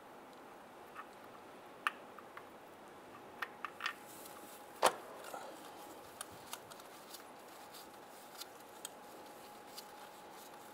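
A ratchet wrench clicks in short bursts as a bolt is turned.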